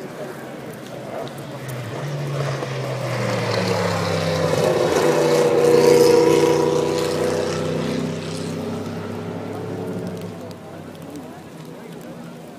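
A race car engine roars past loudly, its pitch rising and then dropping away.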